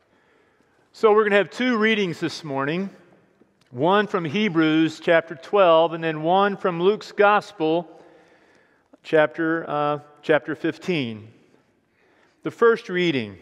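A middle-aged man reads aloud calmly through a microphone in a large echoing hall.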